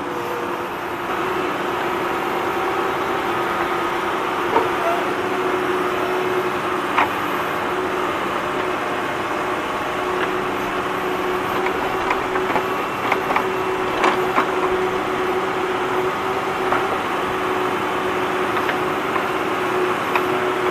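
Toy wheels and tracks rattle over rough concrete.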